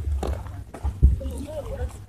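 Footsteps scuff on a dirt road.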